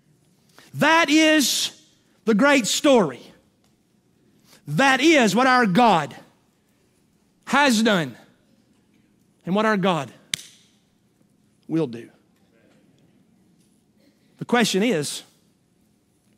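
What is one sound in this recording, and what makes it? A middle-aged man speaks with animation through a microphone, in short bursts with pauses.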